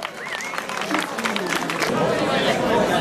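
People clap their hands outdoors.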